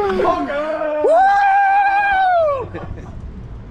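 A young man exclaims loudly in amazement close by.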